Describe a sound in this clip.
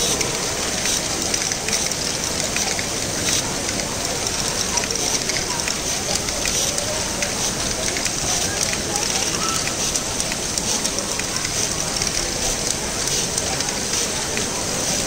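Small plastic balls clatter and click along a toy machine.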